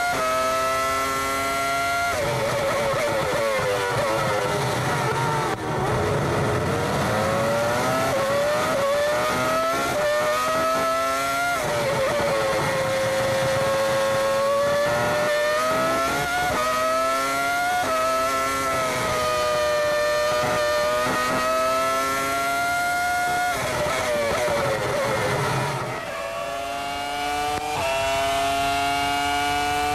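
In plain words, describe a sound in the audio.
A racing car engine screams at high revs, rising in pitch and dropping sharply as it shifts gears.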